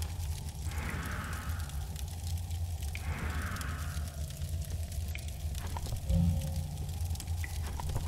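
A fire crackles in dry hay.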